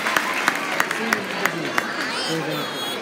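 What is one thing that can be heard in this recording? A crowd claps rapidly at the start.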